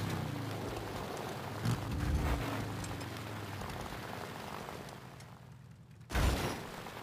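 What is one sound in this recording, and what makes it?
Tyres crunch and skid on loose dirt and gravel.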